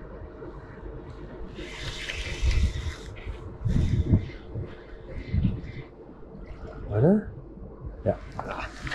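A jacket rustles close by.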